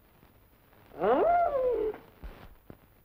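A woman cries out in a high voice.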